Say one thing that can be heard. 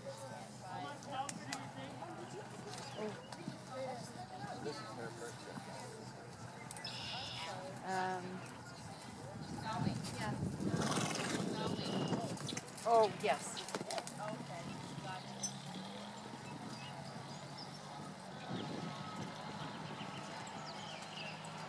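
A horse's hooves thud on soft sand as it canters.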